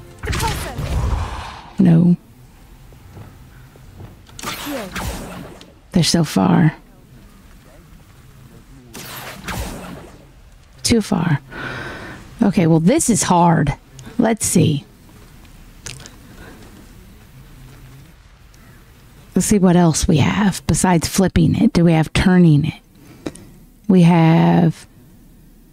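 A young woman talks casually into a close microphone, in bursts with pauses.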